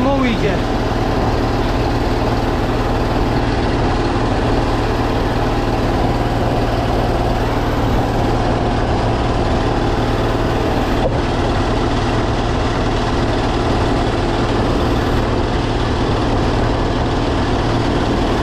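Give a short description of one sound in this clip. A drain cleaning cable whirs and rattles steadily as it is fed into a pipe.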